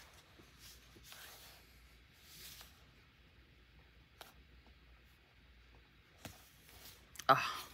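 Paper crinkles softly as a sticker is peeled and pressed down.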